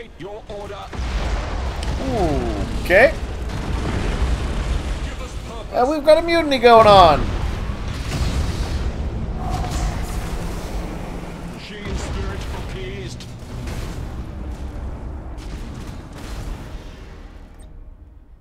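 Spaceship engines rumble deeply.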